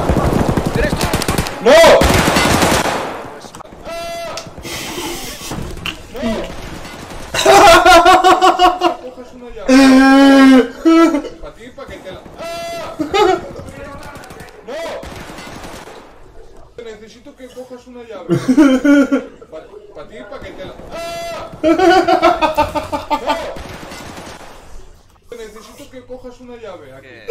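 Young men shout and laugh loudly into microphones.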